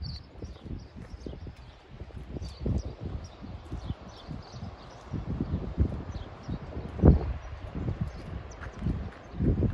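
Small waves wash gently onto a beach in the distance.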